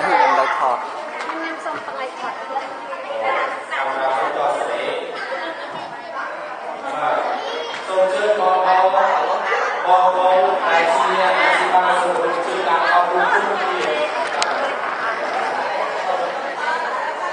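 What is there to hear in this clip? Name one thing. Many adults and children chatter at once in a busy, echoing hall.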